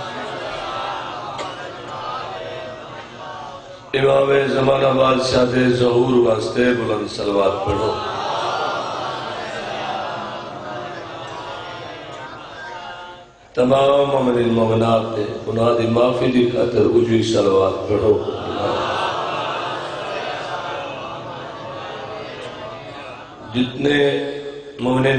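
A man chants loudly and with feeling into a microphone, heard through loudspeakers with a long echo.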